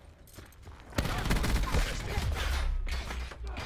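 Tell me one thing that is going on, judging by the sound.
An automatic rifle fires.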